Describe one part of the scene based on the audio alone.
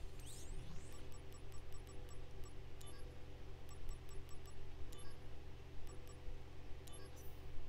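Short electronic menu blips tick repeatedly.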